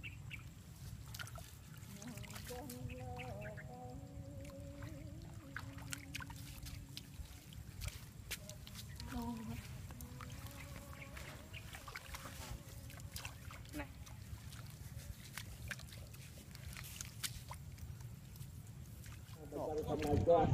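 Hands splash and squelch in shallow muddy water.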